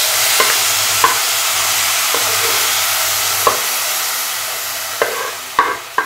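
Food sizzles loudly in hot oil in a pan.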